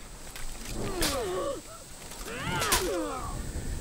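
Steel swords clash with a ringing clang.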